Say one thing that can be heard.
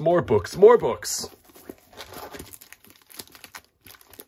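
Paper packaging rustles and crinkles as it is handled.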